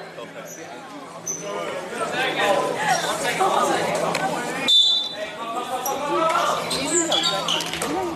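A crowd of young people shouts and chatters in a large echoing hall.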